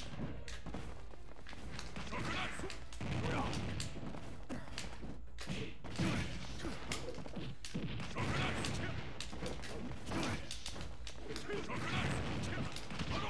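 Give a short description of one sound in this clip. Punches and hits thud and crack in a fast fighting game.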